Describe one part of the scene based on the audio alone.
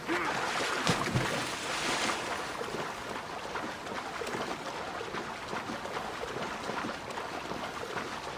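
A swimmer's strokes splash through water.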